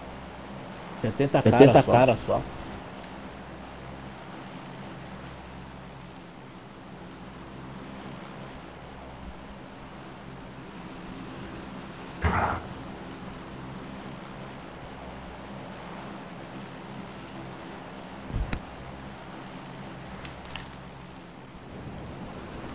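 An airplane engine drones steadily.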